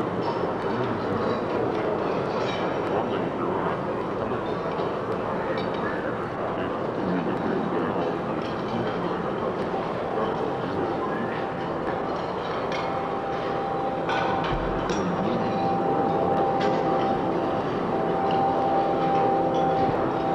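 Electronic music plays from a drum machine and synthesizers.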